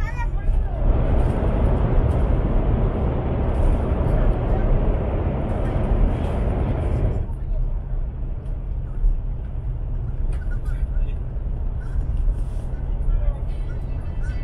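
A train rumbles steadily along the tracks, with a loud roar that suddenly drops to a softer rumble.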